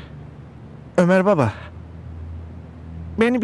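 A man speaks in a low, firm voice.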